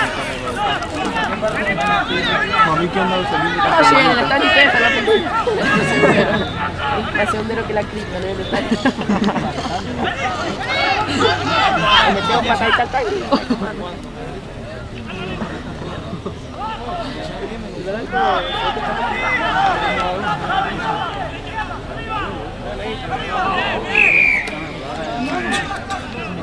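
Players and spectators shout and call out across an open field outdoors.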